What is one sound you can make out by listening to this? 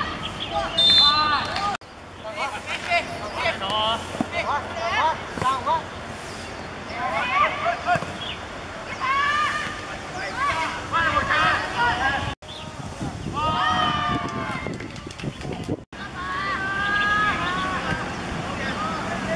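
A football thumps as it is kicked.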